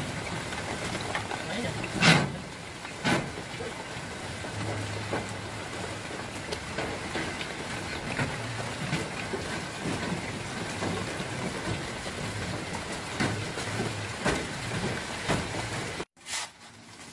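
Sharp knocks ring out on a metal roof.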